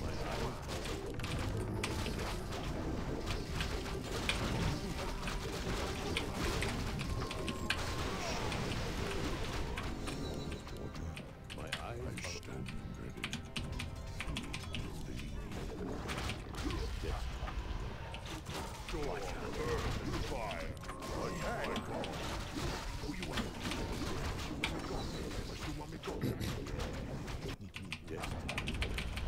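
Game battle sounds clash and clang with spells bursting.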